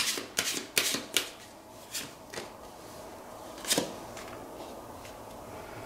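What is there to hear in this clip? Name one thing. Playing cards are laid down with soft taps and slides on a table.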